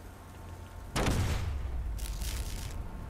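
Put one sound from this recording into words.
A loud explosion bursts nearby and rumbles.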